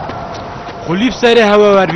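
A man speaks up briefly.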